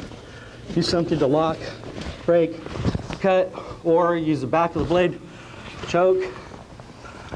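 A middle-aged man explains calmly.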